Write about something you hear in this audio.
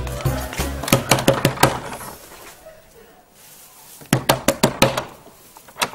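A woman knocks hard on a wooden door.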